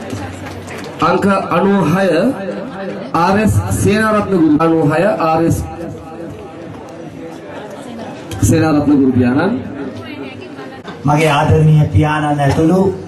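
A man speaks through a microphone over loudspeakers, in a calm and formal tone.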